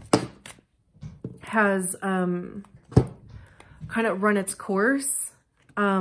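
Cards slap down onto a table.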